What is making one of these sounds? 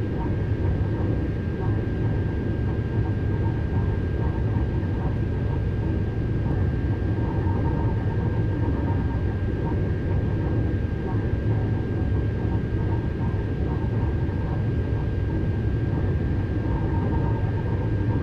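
An electric train motor hums with a steady high whine.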